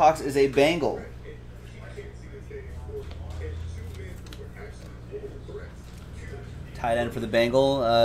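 Plastic card sleeves click and rustle in a man's hands.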